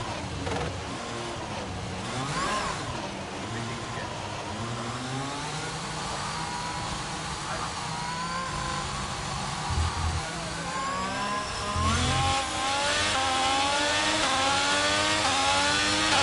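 Gears shift with quick jumps in engine pitch.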